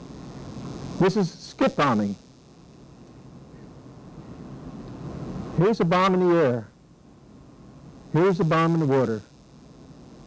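An elderly man speaks slowly through a microphone in a room with some echo.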